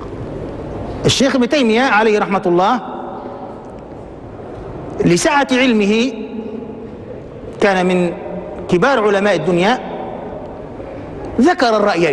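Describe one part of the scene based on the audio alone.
A middle-aged man speaks calmly and with emphasis into a microphone, in short bursts with pauses.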